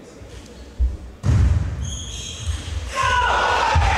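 A table tennis ball clicks back and forth in a quick rally.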